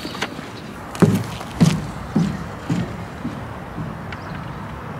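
Footsteps tap on a wooden boardwalk.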